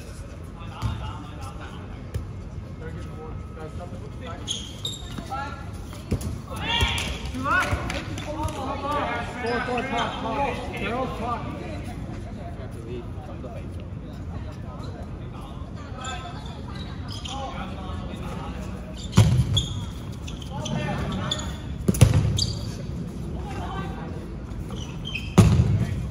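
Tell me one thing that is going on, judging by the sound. Balls thud against hands and the floor in a large echoing hall.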